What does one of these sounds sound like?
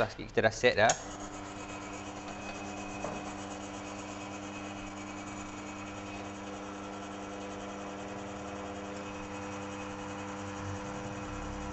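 An espresso machine hums steadily as it brews.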